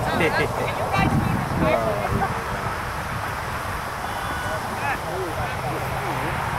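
Men shout to each other at a distance outdoors.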